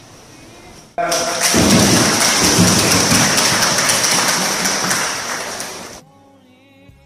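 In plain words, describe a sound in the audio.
A crowd applauds loudly in an echoing hall.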